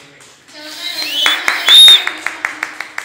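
An audience cheers and whistles loudly.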